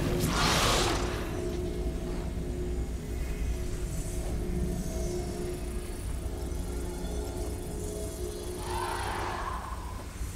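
A glowing beam of light hums steadily.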